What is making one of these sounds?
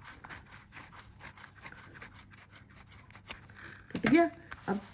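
Scissors snip repeatedly through thick yarn.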